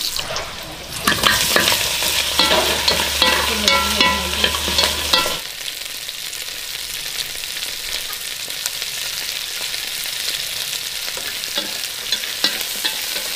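Meat sizzles and crackles in hot oil.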